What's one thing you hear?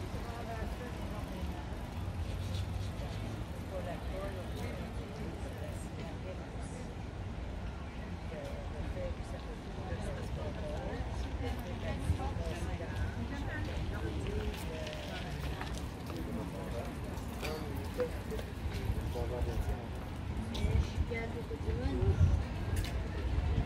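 Men and women chat in the distance outdoors.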